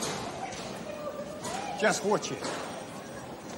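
A middle-aged man speaks briefly and gruffly, close by.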